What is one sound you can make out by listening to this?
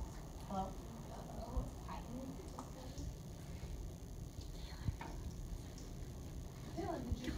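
Children chatter quietly nearby.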